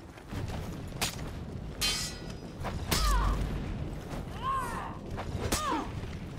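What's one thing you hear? Swords clash and ring with sharp metallic hits.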